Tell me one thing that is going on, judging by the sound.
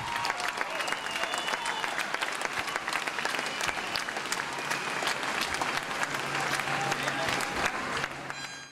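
A drummer plays cymbals and drums.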